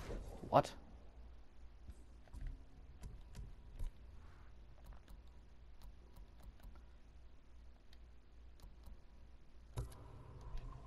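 Soft menu clicks sound as pages switch.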